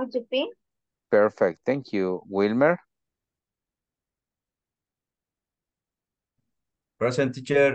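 A young man speaks calmly over an online call, in short bursts.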